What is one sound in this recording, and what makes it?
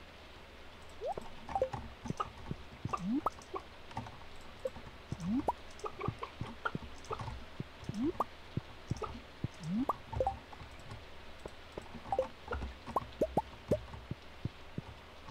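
Chickens cluck softly.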